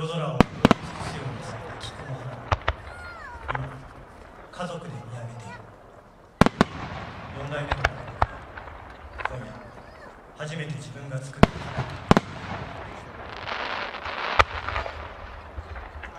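Fireworks crackle after bursting.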